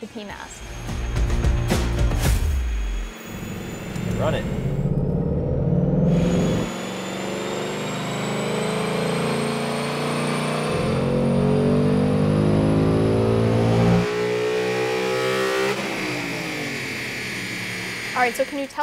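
A car engine revs hard and roars, rising and falling in pitch.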